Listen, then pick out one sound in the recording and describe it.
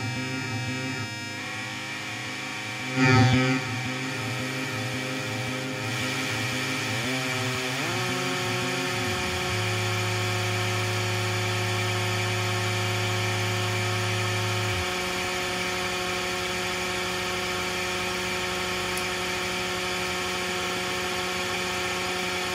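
A modular synthesizer plays pulsing, buzzing electronic tones that glide in pitch and settle into a steady drone.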